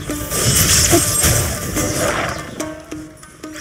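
Electric blasts crackle and boom in a fight.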